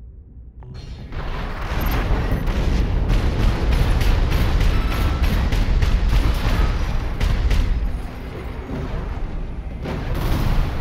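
Heavy guns fire in rapid bursts with a loud rumble.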